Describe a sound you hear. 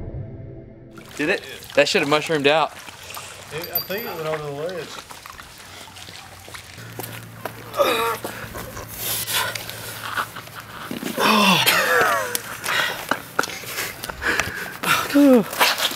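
A young man talks with animation, close by, outdoors.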